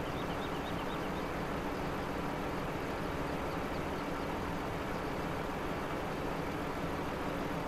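A harvester crane whirs as its grapple moves.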